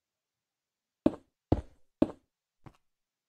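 A stone block is set down with a dull thud.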